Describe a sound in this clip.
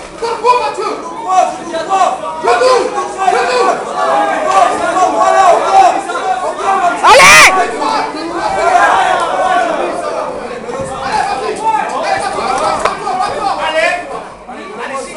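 A crowd of men and women shouts and cheers loudly all around.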